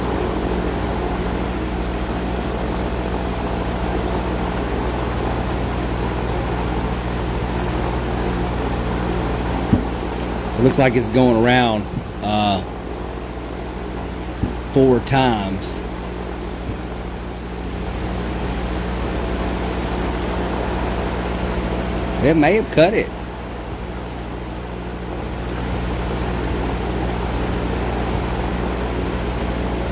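A machine hums steadily with a whirring fan.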